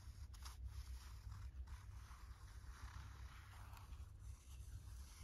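A bottle of glue squeaks and sputters softly as it is squeezed.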